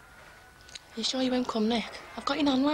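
A young woman speaks quietly and sadly, close by.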